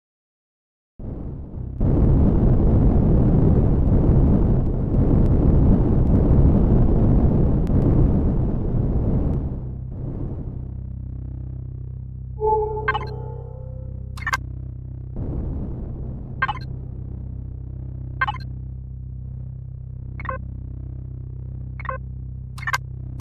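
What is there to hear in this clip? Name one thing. A spaceship engine roars steadily, then settles to a low hum.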